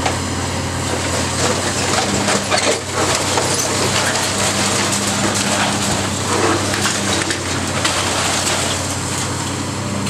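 Concrete and brick crunch and crash as a building is torn down.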